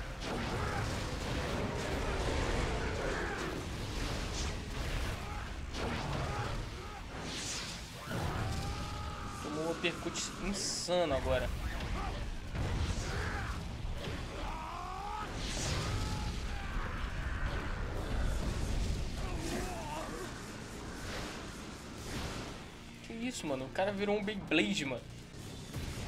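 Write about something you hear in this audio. Heavy blows and rumbling crashes boom.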